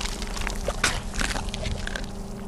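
A heavy blow strikes flesh with a wet squelch.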